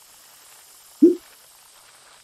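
A man briefly voices a short word close to a microphone.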